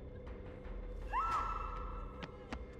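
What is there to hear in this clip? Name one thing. A metal locker door creaks open.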